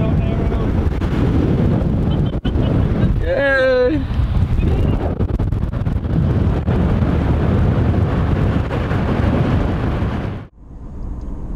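Wind rushes loudly past the outside of a moving vehicle.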